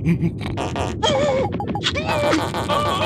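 A small cartoon creature cries out in a squeaky voice.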